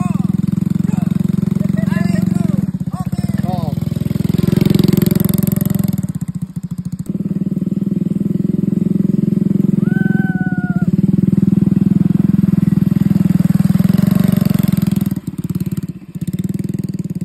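A small go-kart engine putters and revs.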